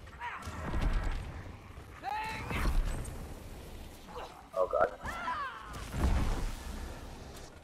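Gunshots boom in a video game.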